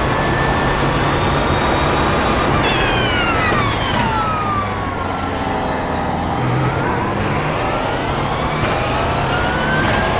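A race car engine roars at high revs, then drops in pitch as the car brakes and rises again as it speeds up.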